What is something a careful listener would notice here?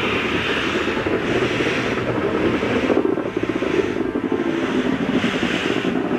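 A steam locomotive hisses as steam jets from its cylinder cocks.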